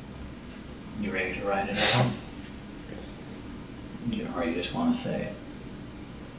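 A woman speaks quietly, heard through a room microphone.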